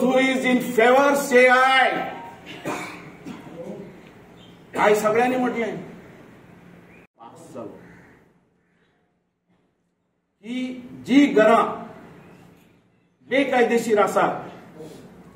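An older man speaks with animation into a nearby microphone, pausing between phrases.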